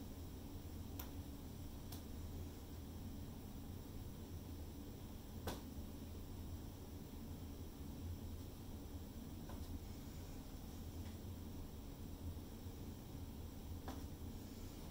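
Small plastic cups tap down on a hard surface.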